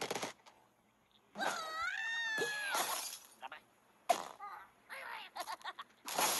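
Wooden planks clatter and crash down.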